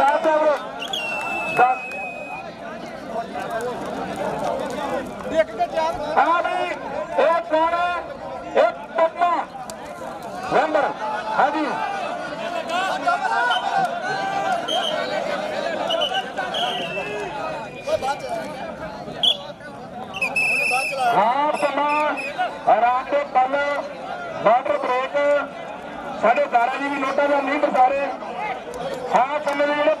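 A crowd of men cheers and shouts outdoors.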